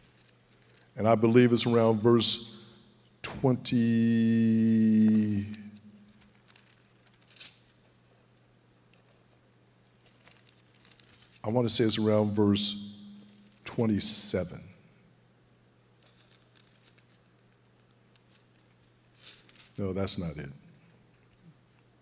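An older man speaks slowly and calmly into a microphone, with long pauses.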